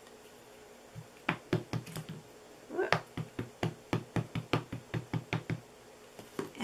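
An ink pad taps rapidly against a rubber stamp.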